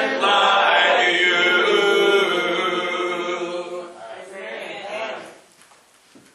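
A man sings loudly with feeling through a microphone, then falls silent.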